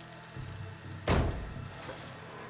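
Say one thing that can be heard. A heavy metal door is forced open with a loud clang.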